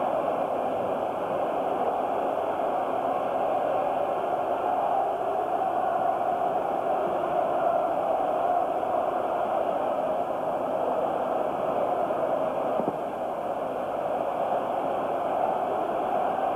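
A large crowd roars and shouts steadily in a wide open stadium.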